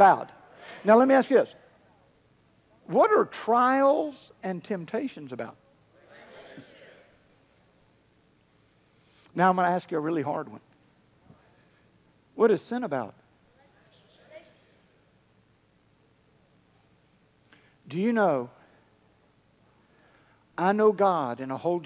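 A man preaches with feeling into a microphone, in bursts with long pauses.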